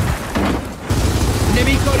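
Rapid gunfire rattles out in bursts.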